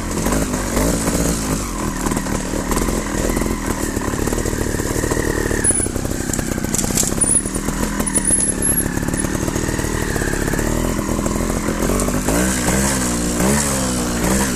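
A bike rattles over bumpy ground.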